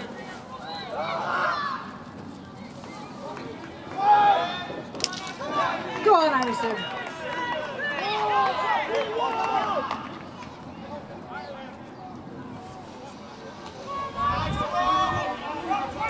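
Young men shout and call out to each other across an open field.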